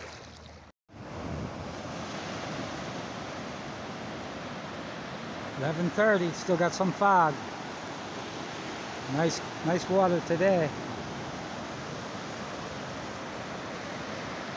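Waves break and wash up onto the shore steadily.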